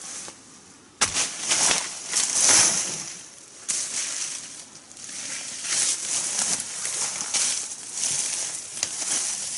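Dry leaves and stalks rustle and crunch under a person's footsteps close by.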